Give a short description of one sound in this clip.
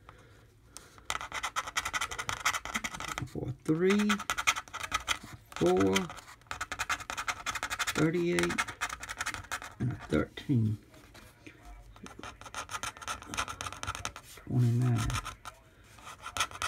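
A coin scratches across a lottery ticket in quick bursts.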